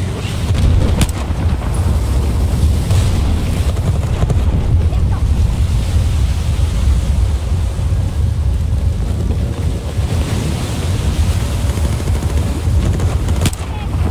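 Heavy wind and rain roar steadily outdoors.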